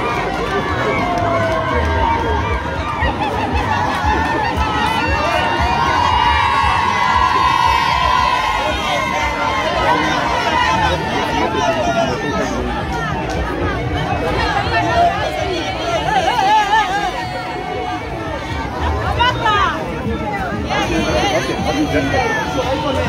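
A crowd of men and women chatters and calls out all around, outdoors.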